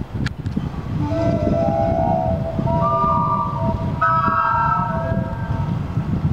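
A steam whistle on a boat sounds a series of loud notes.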